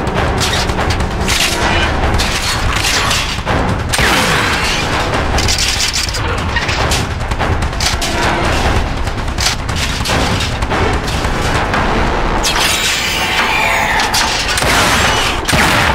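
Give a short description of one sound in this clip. A gun fires in rapid bursts.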